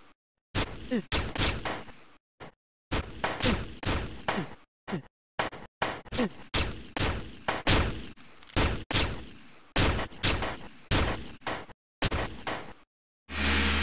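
Gunshots fire in rapid bursts with sharp echoing cracks.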